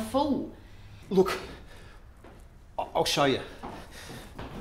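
A man speaks with agitation, close by.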